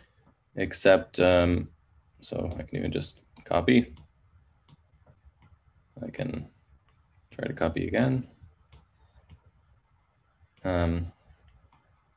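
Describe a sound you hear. A man speaks calmly and haltingly into a close microphone.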